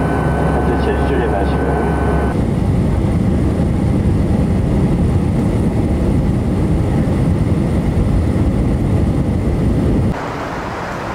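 An airplane engine roars steadily from inside the cabin.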